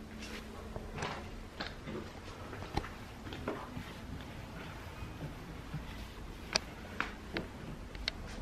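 Footsteps thud on carpeted stairs.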